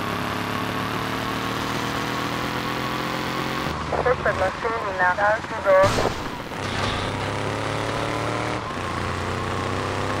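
A car engine hums steadily and slowly climbs in pitch.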